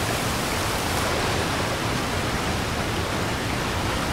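Water splashes as a small figure swims through it.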